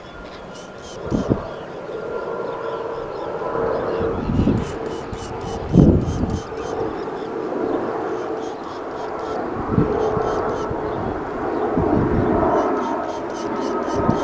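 Wind gusts buffet outdoors, rumbling low now and then.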